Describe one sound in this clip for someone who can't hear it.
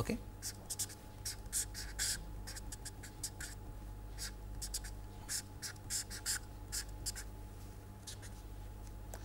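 A marker squeaks and scratches in short strokes on paper.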